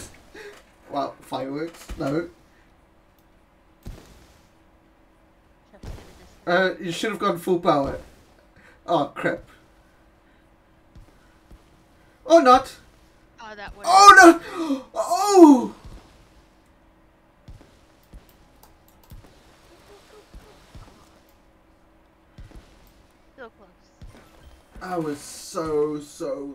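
A man talks with animation into a close microphone, in bursts.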